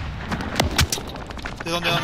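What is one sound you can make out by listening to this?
A rifle fires several sharp shots in quick succession.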